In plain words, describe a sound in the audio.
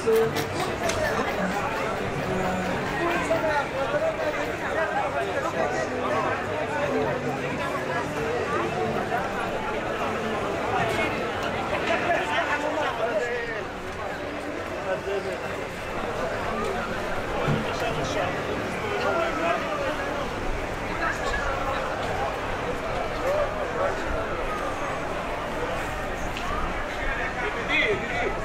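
Footsteps shuffle on pavement nearby.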